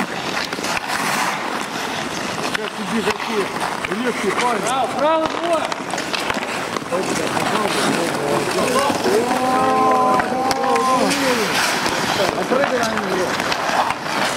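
Ice skates scrape across ice.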